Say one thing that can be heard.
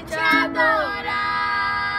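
A boy strums a ukulele.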